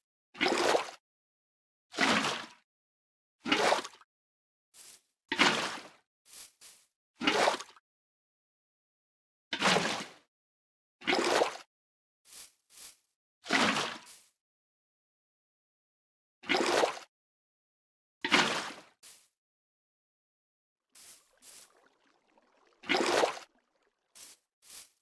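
Water splashes in short bursts as a bucket is emptied and filled again and again.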